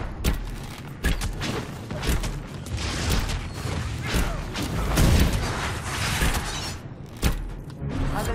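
Magic spells crackle and burst in quick succession during a fight.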